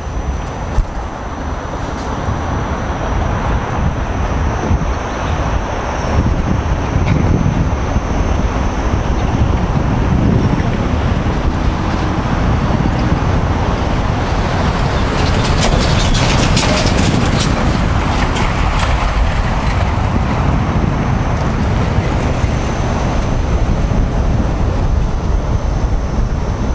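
Skate wheels roll and rumble on pavement.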